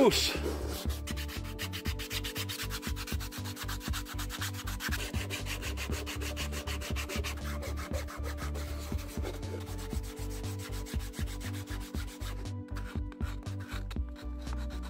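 Sandpaper scrapes and rasps against a hard plastic shell.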